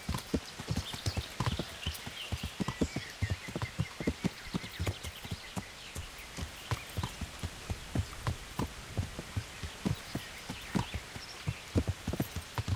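Horse hooves thud steadily on soft ground.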